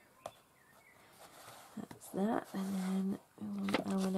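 A hardcover book is turned over and set down on a table with a soft thump.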